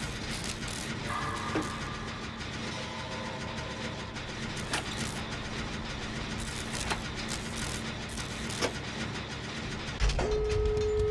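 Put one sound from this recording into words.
A machine rattles and clanks as it is repaired.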